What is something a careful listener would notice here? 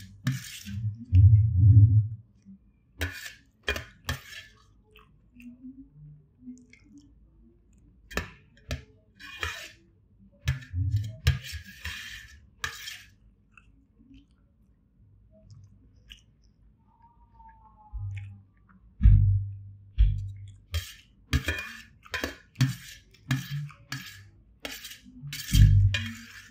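A man chews food close by.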